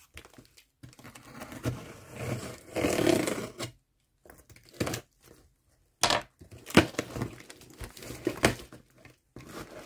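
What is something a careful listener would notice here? Hands rub and press over a cardboard box.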